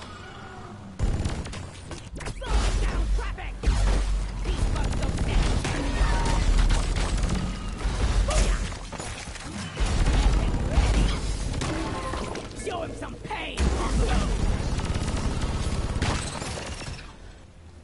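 Loud blasts boom and rumble.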